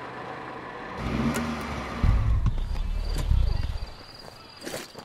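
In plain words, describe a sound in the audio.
A car engine rumbles loudly.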